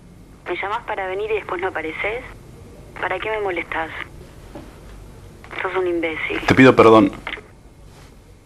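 A young man talks quietly on a phone, close by.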